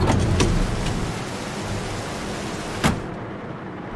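Rain patters steadily outside a car.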